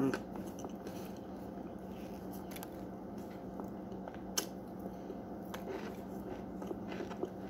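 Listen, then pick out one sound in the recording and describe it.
A woman chews food close by, with soft wet smacking sounds.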